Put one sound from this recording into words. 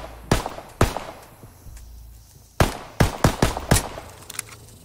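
A pistol fires several sharp single shots close by.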